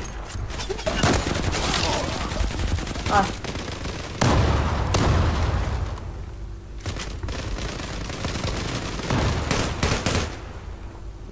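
Rifles fire in rapid, loud bursts.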